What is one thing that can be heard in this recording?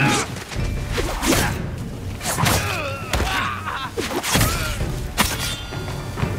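Swords clash and strike sharply.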